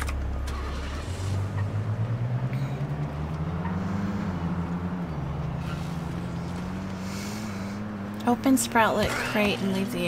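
A car engine starts and revs up as the car drives off.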